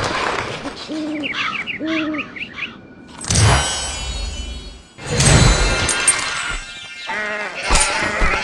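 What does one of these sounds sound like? Birds squawk in short bursts.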